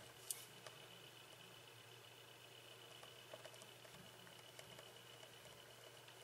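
A marker scratches softly across paper.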